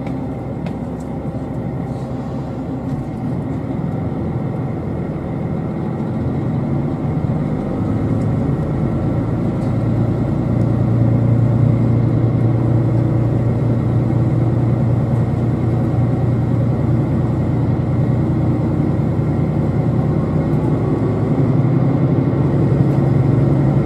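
A train rumbles steadily along the tracks, heard from inside a carriage, growing louder.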